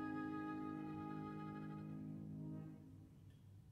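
A viola and a piano hold a final chord that fades out.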